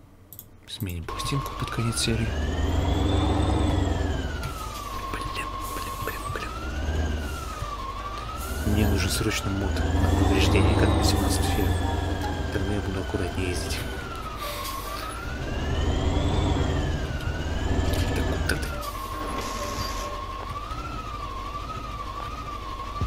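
A tractor engine rumbles and revs up and down.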